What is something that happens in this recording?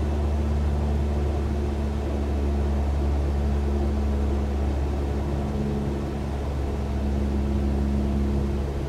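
A small propeller plane's engine drones steadily from inside the cockpit.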